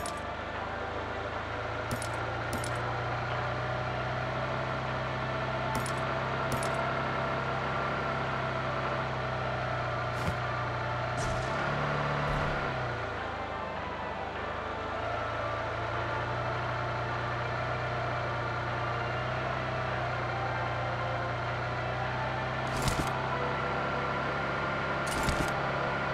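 A car engine hums steadily as a car drives over rough ground.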